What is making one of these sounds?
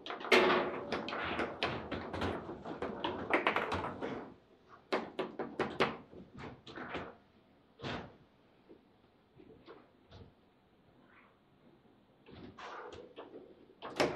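Table football rods rattle and thud as players spin them.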